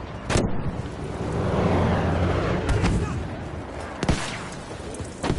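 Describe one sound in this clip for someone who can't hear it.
An explosion booms and rumbles in the distance.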